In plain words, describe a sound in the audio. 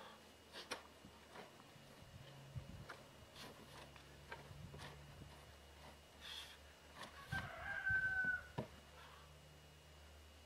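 A shovel scrapes and thuds into loose soil.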